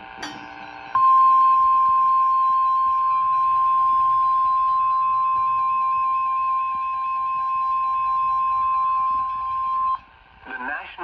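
A radio gives a long, steady, high tone.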